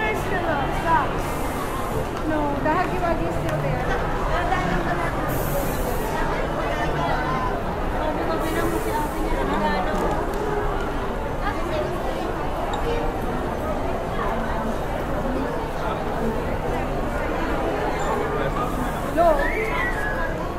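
A crowd of people chatters all around in a large, echoing indoor hall.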